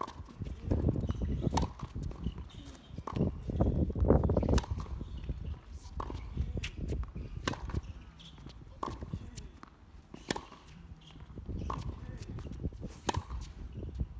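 Tennis balls are struck hard with rackets in a steady rally.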